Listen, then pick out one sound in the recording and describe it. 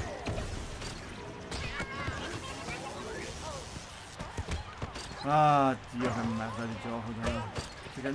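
Cartoon footballers kick and tackle with thumping, clashing game sound effects.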